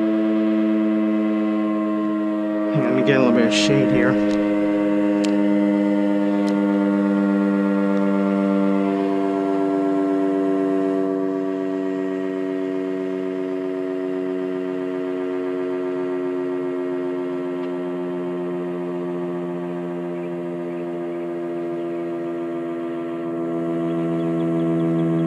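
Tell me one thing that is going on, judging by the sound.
A loud siren sounds a steady, chord-like wail that slowly drops a little in pitch.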